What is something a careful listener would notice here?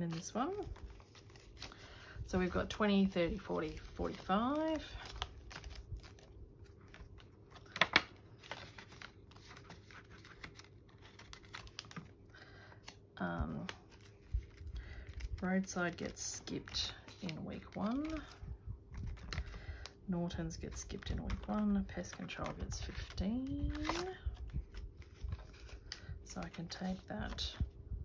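Paper banknotes rustle as they are handled.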